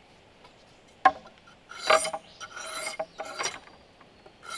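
A knife scrapes and rasps along strips of bamboo.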